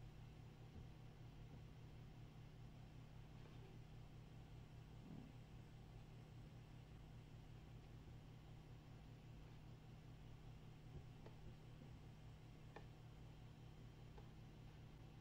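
A paintbrush softly strokes across paper.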